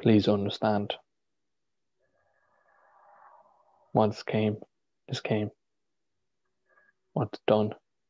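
A young man speaks calmly in short phrases over an online call.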